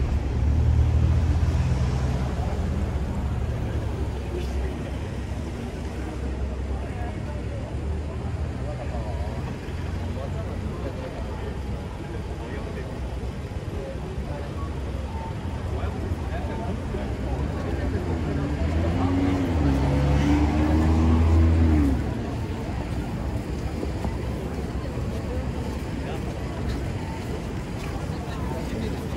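Traffic rumbles steadily on a busy city street outdoors.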